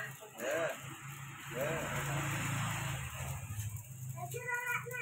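Food sizzles and hisses in a hot pan.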